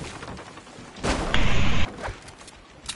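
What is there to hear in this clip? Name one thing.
Wooden planks clatter as a structure is quickly built.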